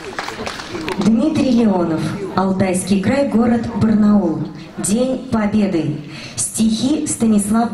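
A woman sings through loudspeakers outdoors.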